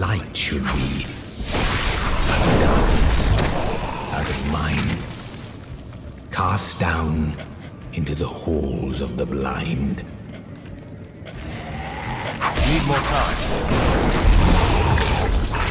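Magic spells crackle and whoosh with electric bursts.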